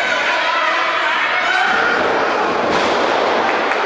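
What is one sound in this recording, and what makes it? A wrestler's body thuds onto the ring mat.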